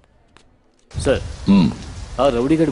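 Another man speaks briefly.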